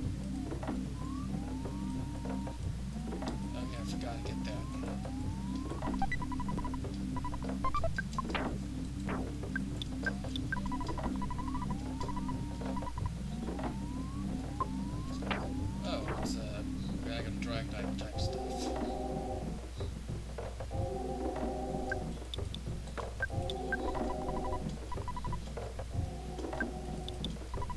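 Short electronic blips sound as game menus open and close.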